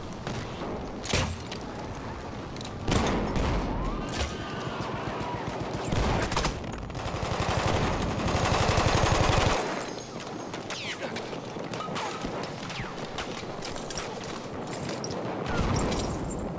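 Guns fire in sharp bursts and loud single shots.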